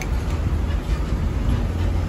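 Metal tools clink as a hand rummages through them.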